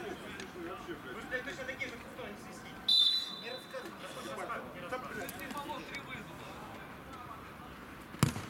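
Men call out to each other across an outdoor pitch.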